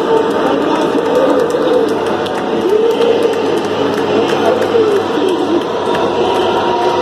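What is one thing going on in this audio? A man shouts into a microphone.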